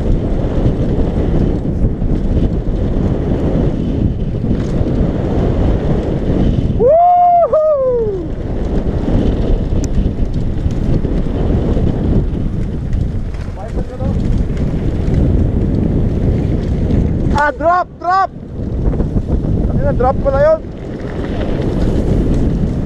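Wind rushes loudly past a fast-moving rider.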